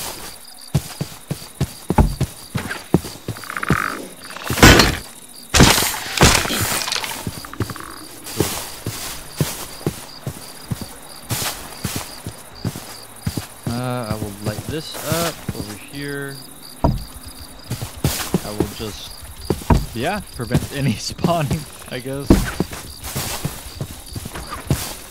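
Blocks of earth crunch as they are dug out in quick succession.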